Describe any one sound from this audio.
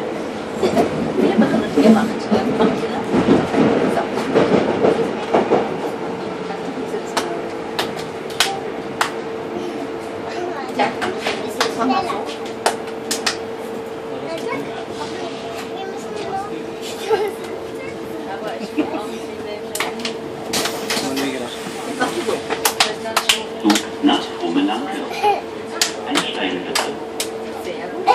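A train hums steadily as it rolls along.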